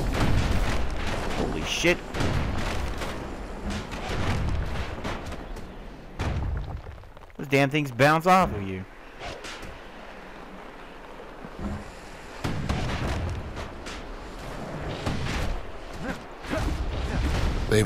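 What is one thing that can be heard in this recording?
Video game combat effects clash and thud.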